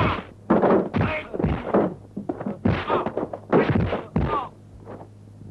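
A young man shouts fiercely up close.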